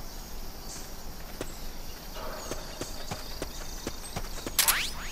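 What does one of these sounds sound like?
Footsteps patter softly on grass.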